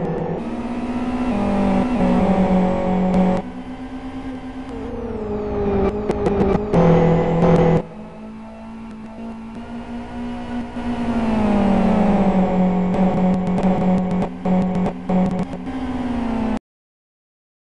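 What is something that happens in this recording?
Racing car engines roar and whine, rising and falling in pitch as the cars shift gears.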